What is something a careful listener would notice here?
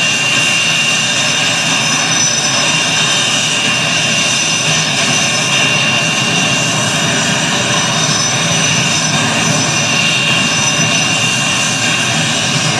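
A jet engine whines and roars steadily at idle.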